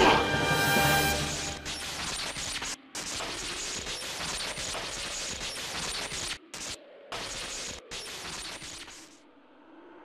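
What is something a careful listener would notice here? Electricity crackles and sizzles loudly.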